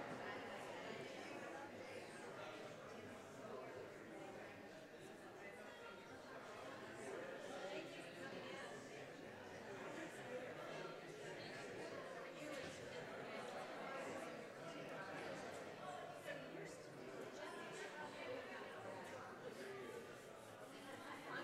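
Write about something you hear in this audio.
Several adults chat casually in a large reverberant hall.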